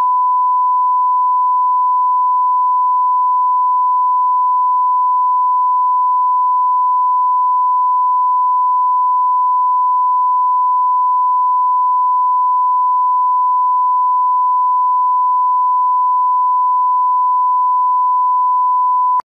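A steady high-pitched test tone sounds without a break.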